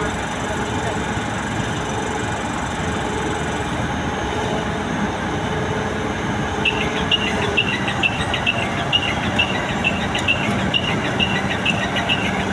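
A crane's diesel engine rumbles steadily nearby.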